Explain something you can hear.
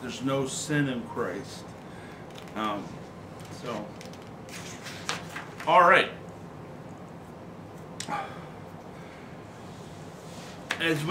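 A middle-aged man speaks slowly and calmly, close by, with pauses.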